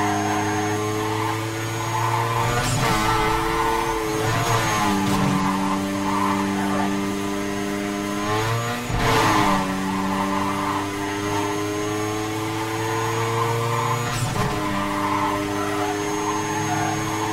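Tyres whoosh on the road as a car races along.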